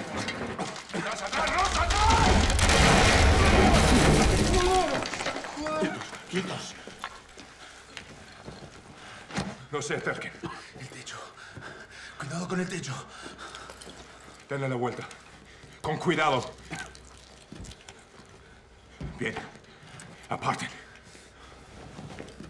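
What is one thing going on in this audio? Men call out commands tensely, close by.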